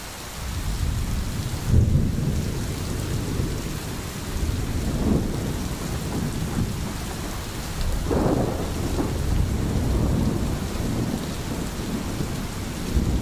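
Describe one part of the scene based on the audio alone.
A stream babbles and gurgles over stones.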